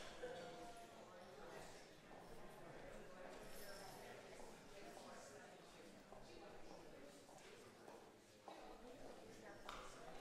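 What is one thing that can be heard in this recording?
Footsteps tap across a wooden floor.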